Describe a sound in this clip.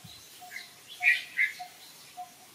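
A baby monkey squeaks briefly.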